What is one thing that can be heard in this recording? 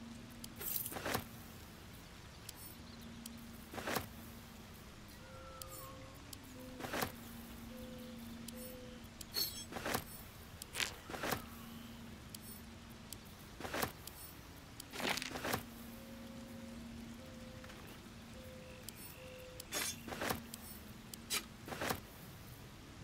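Game menu clicks and item sounds ring out now and then.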